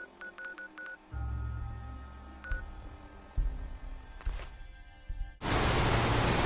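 An electronic device clicks and beeps.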